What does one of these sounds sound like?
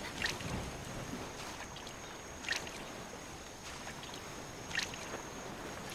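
A fishing float plops softly on water a few times.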